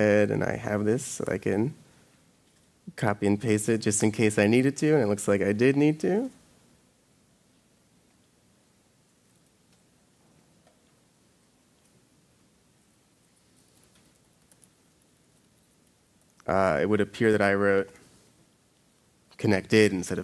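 A young man speaks calmly through a microphone, pausing now and then.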